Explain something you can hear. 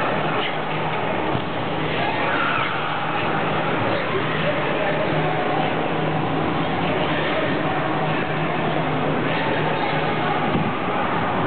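Skate blades scrape across ice.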